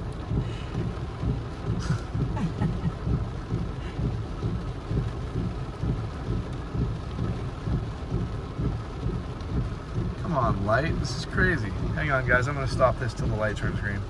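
Windshield wipers swish across the glass.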